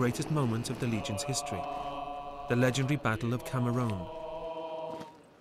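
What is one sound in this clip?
A group of young men sing loudly together.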